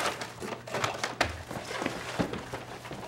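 Boxes clatter onto a hard floor.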